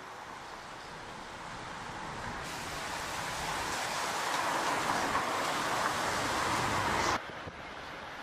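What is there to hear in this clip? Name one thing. A pack of racing bicycles whirs past.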